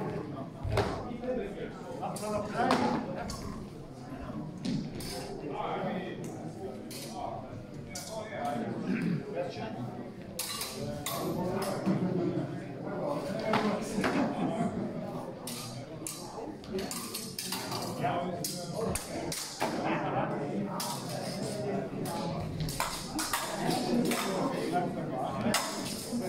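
A crowd of people chat in the background.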